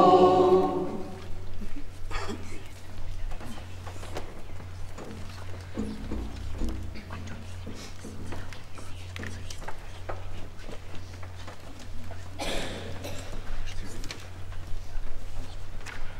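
A crowd shuffles and murmurs while moving about.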